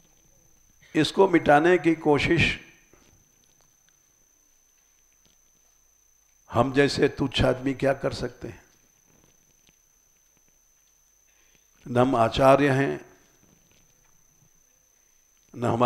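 An elderly man speaks slowly and calmly into a close microphone, with long pauses.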